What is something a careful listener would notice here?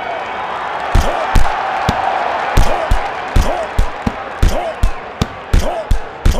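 Punches thud heavily in quick bursts.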